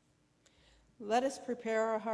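An elderly woman begins speaking calmly into a microphone.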